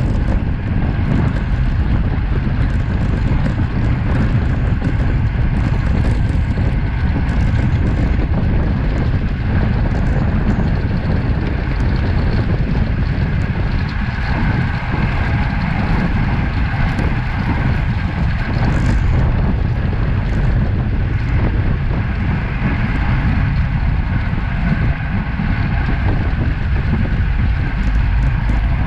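Bicycle tyres hum on a rough road.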